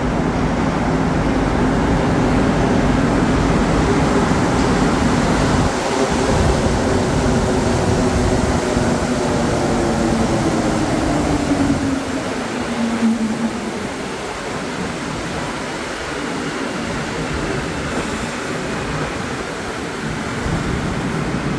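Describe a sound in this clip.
Train wheels roar and clatter on the rails close by.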